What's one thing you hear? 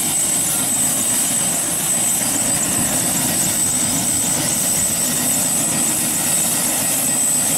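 A helicopter's engine whines loudly and steadily close by.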